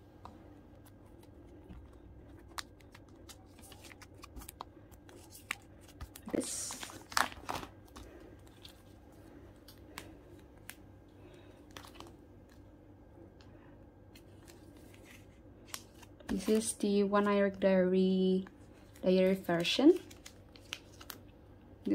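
Plastic sleeves crinkle and rustle as cards are handled.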